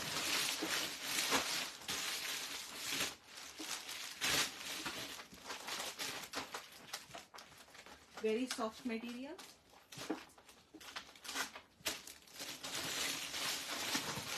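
Fabric rustles and crinkles close by.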